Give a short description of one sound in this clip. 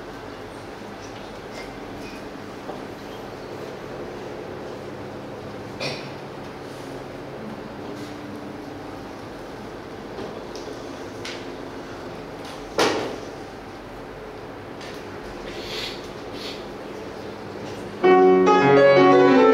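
A grand piano is played softly, then breaks into loud chords, in an echoing room.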